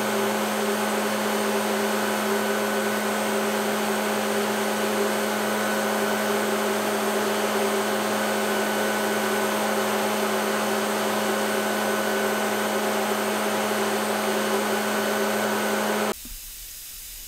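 A woodworking lathe hums steadily as it shapes wood.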